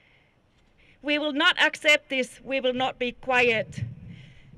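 A woman speaks loudly into a microphone, heard through a loudspeaker outdoors.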